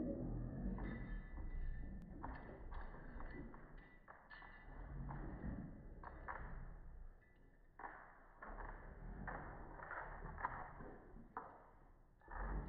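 Dog paws patter and scrape on a wooden floor.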